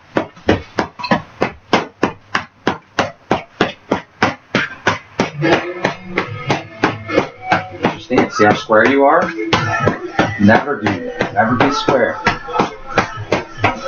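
Boxing gloves thump rapidly against punch mitts.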